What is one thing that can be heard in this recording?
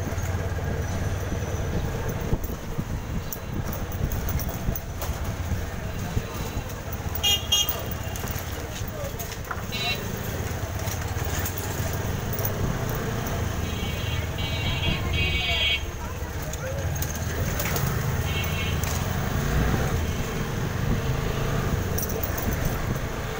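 A motor scooter rides along a street close ahead.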